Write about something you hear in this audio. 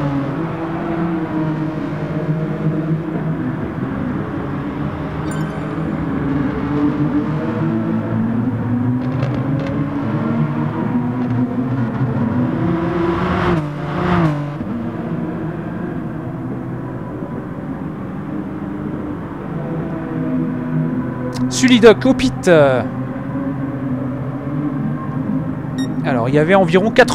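Racing car engines roar and rev up and down throughout.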